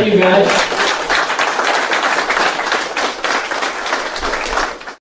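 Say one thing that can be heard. An older man talks steadily through a microphone over a loudspeaker.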